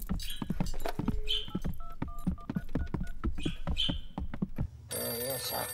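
A rotary telephone dial clicks as it turns and spins back.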